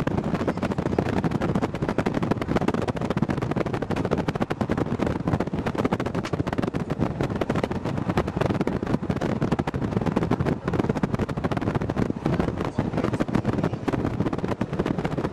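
A vehicle engine rumbles steadily while driving along a bumpy road.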